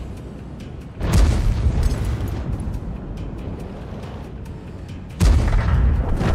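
A heavy gun fires with a loud boom.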